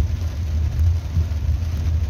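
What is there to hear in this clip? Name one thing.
A windshield wiper sweeps across the glass.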